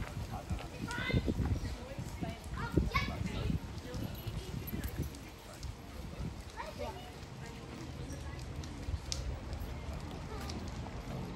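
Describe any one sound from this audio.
Footsteps shuffle along a paved path outdoors.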